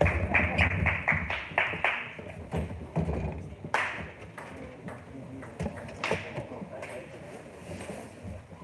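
A table tennis ball clicks quickly back and forth between paddles and table in an echoing hall.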